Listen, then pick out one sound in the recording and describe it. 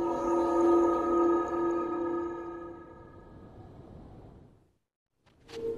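A shimmering magical chime rings out and slowly fades.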